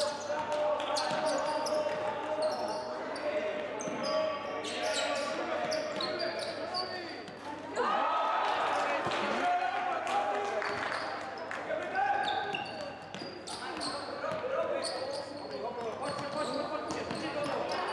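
Sneakers squeak sharply on a hard court, echoing in a large hall.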